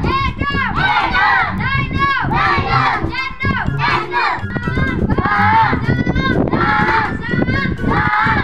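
A young boy recites loudly in a high, sing-song voice.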